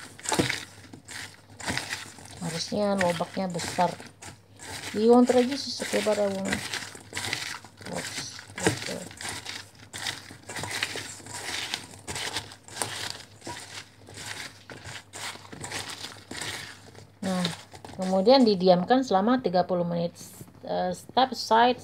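Pieces of food knock and rustle against a metal bowl as a hand tosses them.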